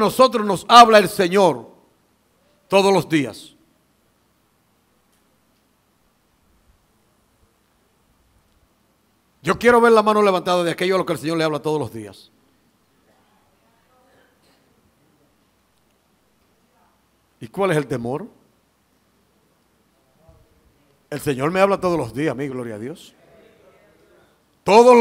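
A middle-aged man preaches with animation through a headset microphone, in bursts with long pauses.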